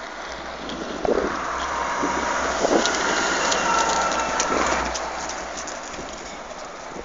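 A bus engine rumbles loudly as the bus pulls up close by and drives past.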